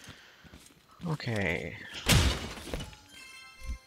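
A crate bursts open with a loud crash.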